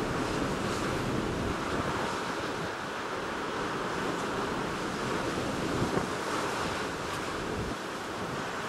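Rough waves churn and wash.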